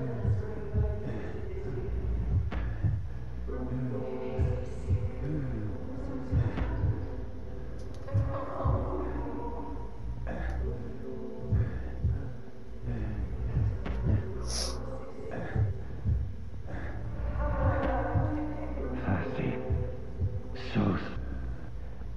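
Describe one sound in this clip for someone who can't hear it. Footsteps thud steadily on hard ground and wooden boards.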